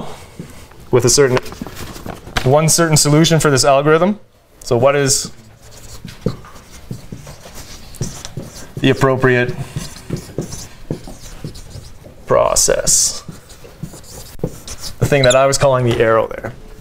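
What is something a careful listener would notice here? A young man speaks calmly, in bursts with pauses.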